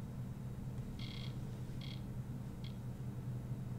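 Short electronic menu tones chime a few times.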